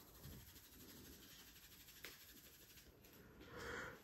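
Hands rub and scrunch through damp hair close by.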